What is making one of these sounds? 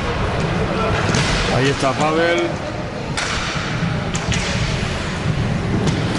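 Roller skate wheels rumble across a wooden floor in an echoing hall.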